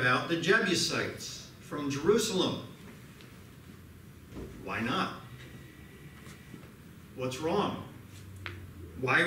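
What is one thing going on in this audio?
A middle-aged man speaks calmly into a microphone, with pauses, in an echoing room.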